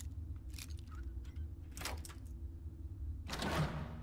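A metal lock pick scrapes and clicks inside a lock.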